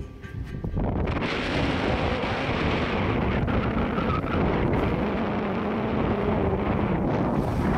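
Water rushes and splashes along a moving ship's hull.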